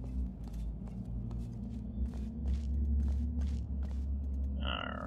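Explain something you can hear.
Footsteps tap steadily on a hard metal floor.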